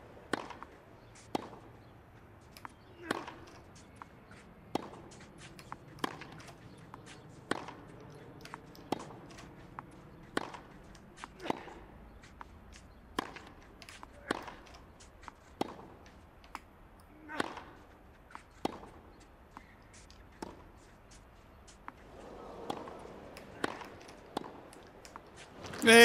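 A tennis ball is struck back and forth by rackets with sharp pops.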